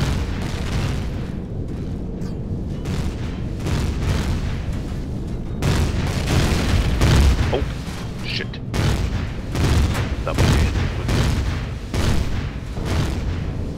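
A spacecraft engine rumbles steadily and deeply.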